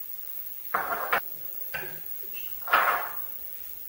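A ceramic bowl is set down on a table with a soft knock.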